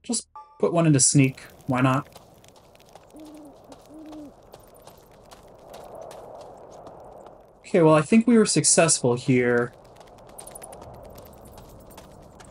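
Armored footsteps run over grass.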